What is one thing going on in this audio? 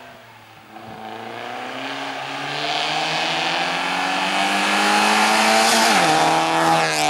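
A small rally car's engine revs hard as it approaches and passes close by.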